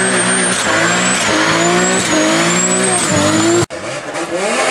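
A car engine revs hard in short bursts.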